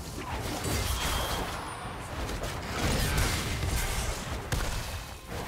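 Spell effects crackle and boom in a video game fight.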